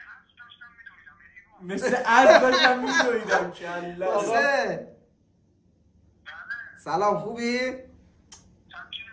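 Young men talk and laugh together close by.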